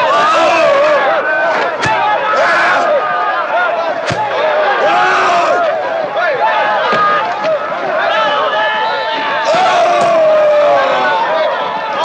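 A crowd of men shouts and jeers loudly all around.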